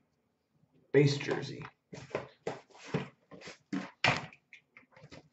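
A cardboard box taps and rustles as a hand handles it.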